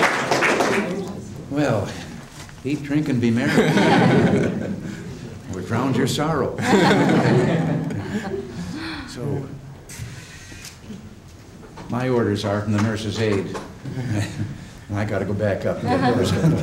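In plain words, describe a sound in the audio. An elderly man speaks calmly and cheerfully nearby.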